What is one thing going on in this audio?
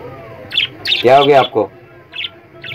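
A budgie squawks loudly.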